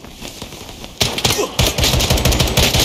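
Rapid gunfire bursts loudly and close.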